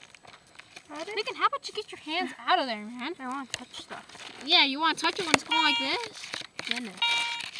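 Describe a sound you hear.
A metal detector gives a wavering, warbling tone.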